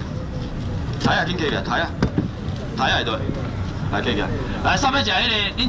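A man calls out loudly, selling goods.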